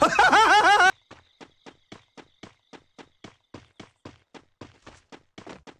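Footsteps run quickly at an even pace.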